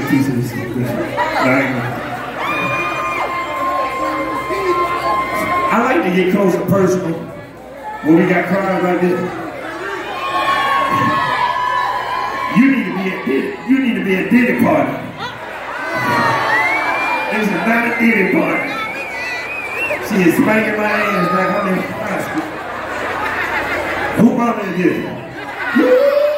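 A crowd cheers and sings along.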